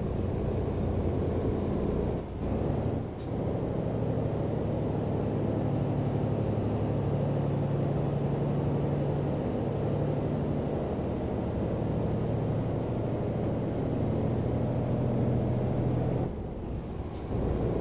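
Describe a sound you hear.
A truck engine drones steadily at low revs.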